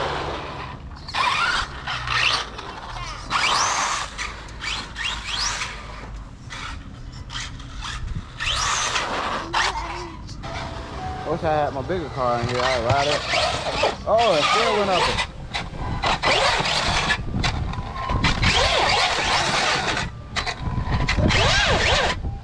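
A toy car's electric motor whines and revs in short bursts.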